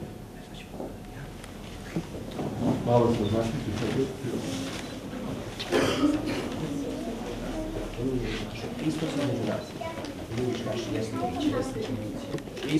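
A crowd of children and adults murmurs softly in the background.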